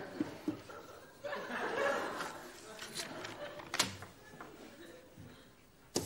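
Paper rustles as a sheet is turned over.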